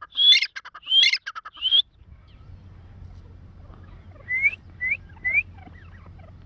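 A bird calls loudly in short, sharp, repeated notes close by.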